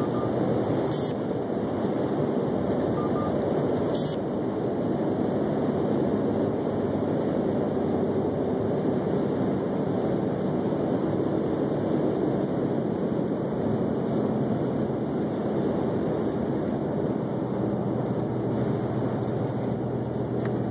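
Tyres hum on asphalt, heard from inside a moving car.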